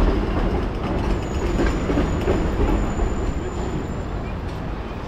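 A tram rumbles past.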